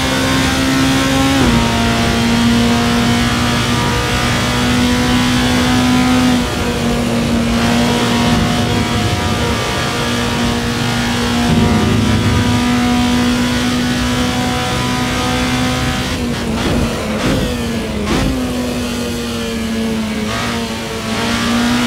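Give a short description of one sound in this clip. A race car engine drones loudly at high revs, its pitch dropping and climbing with each gear shift.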